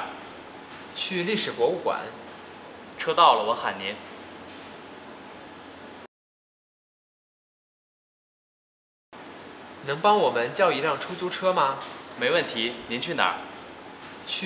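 A man answers calmly, close by.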